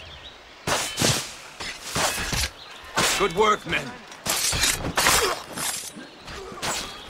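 Swords clash and ring with sharp metallic strikes.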